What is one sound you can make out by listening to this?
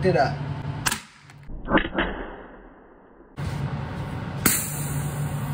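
A small electronic part bursts with a sharp pop.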